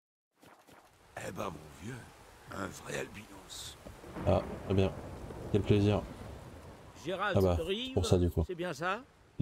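A man's deep voice speaks calmly in a game's dialogue.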